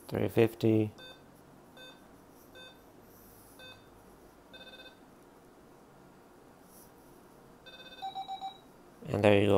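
An electronic game unit beeps in short high tones as its buttons are pressed.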